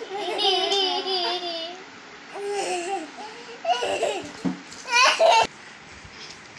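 A young girl laughs and talks excitedly close by.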